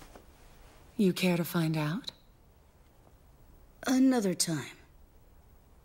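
A woman speaks softly and briefly.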